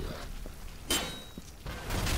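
Sparks crackle and sizzle from a metal pipe.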